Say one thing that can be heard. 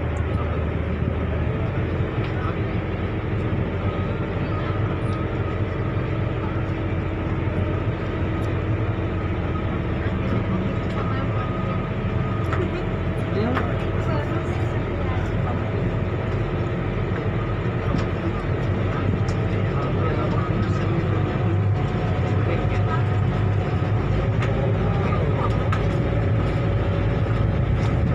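Water churns against a ferry's hull.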